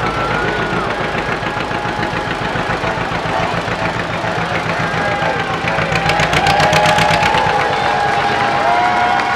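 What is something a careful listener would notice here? An old car engine putters and chugs steadily.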